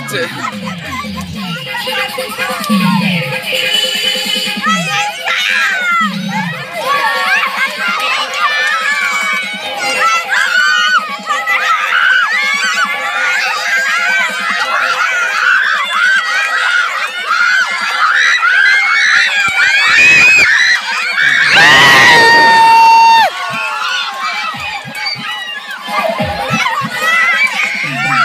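A crowd of children shout and cheer excitedly nearby.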